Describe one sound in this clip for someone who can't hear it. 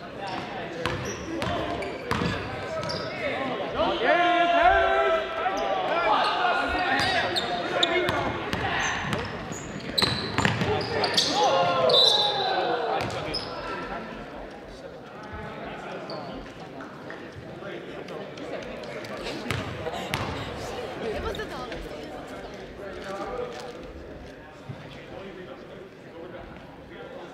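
Sneakers squeak on a wooden court.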